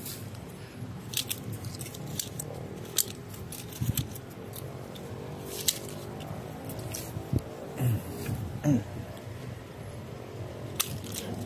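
Leaves rustle as a hand brushes through a plant.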